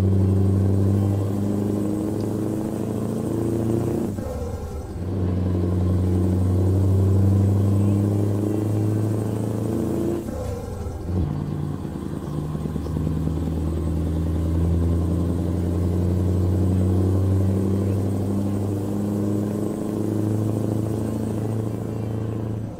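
A truck's diesel engine drones steadily, with brief dips as the gears change.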